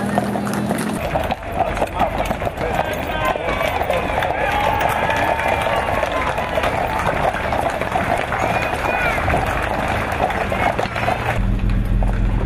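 A crowd chatters and cheers in the distance.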